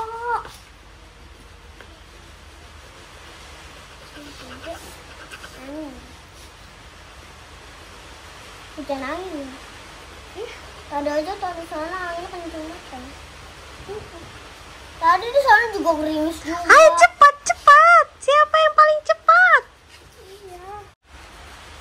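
Young children talk and sing in high voices close by.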